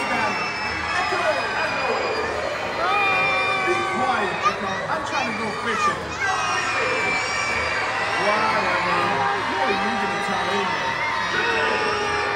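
A man talks with animation through a loudspeaker in a large open space.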